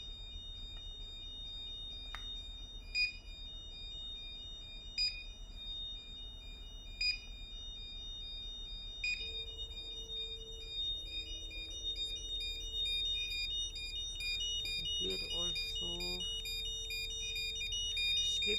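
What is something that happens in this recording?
An electronic alarm gives short, high beeps about every two seconds.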